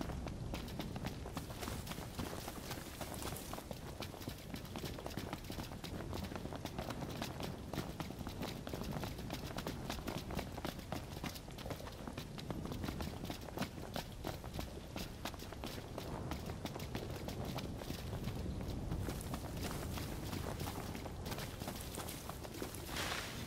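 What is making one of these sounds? Footsteps run quickly over grass and rock.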